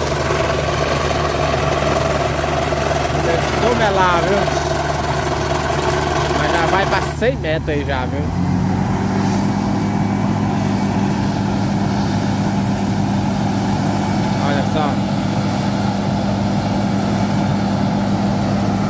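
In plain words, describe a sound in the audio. A drill rod grinds into the ground.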